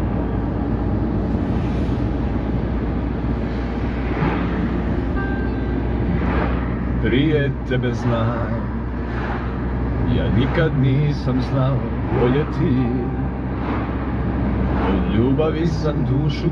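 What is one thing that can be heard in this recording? A car's engine and tyres rumble low and steadily.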